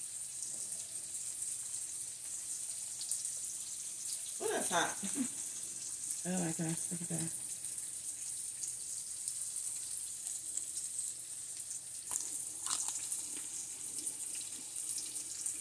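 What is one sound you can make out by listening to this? Bacon sizzles and crackles steadily in a hot pan.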